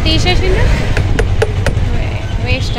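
A metal cup clinks against a steel pot.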